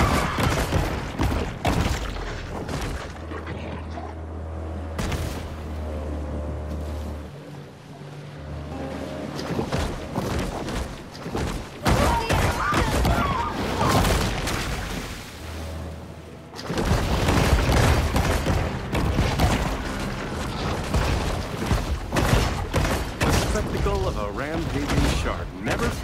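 A shark bites and tears with wet crunching sounds.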